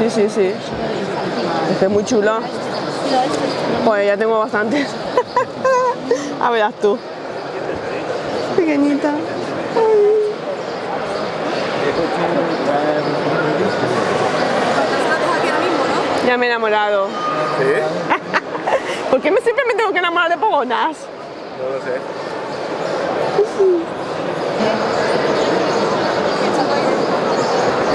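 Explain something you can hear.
A crowd murmurs in a large busy hall.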